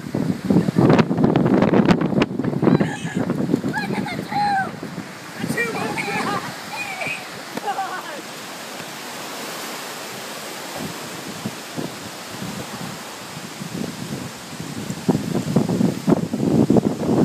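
Strong wind gusts and rumbles outdoors.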